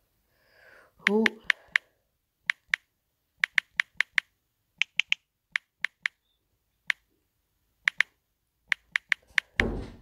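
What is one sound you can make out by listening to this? Keys tap on a phone keyboard with short sharp clicks.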